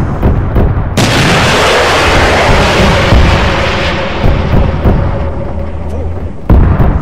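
A helicopter explodes with a loud roar.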